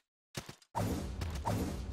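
A magic spell bursts with a deep whoosh.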